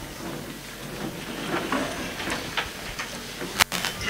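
A crowd murmurs in a large room.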